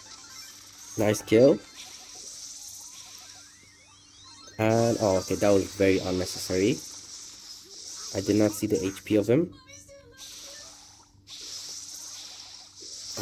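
Video game weapons fire with quick electronic blasts.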